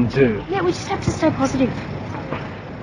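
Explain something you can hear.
A young woman speaks softly and gently, close by.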